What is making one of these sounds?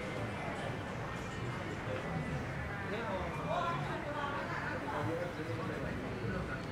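Several men talk casually nearby outdoors.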